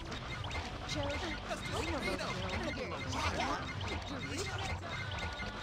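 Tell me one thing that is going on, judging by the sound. A young woman speaks casually and close to a microphone.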